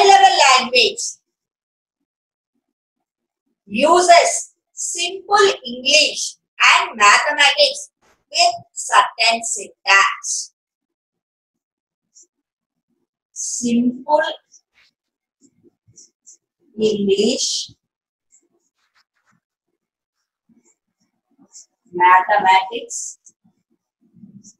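A middle-aged woman speaks calmly and clearly nearby, as if explaining.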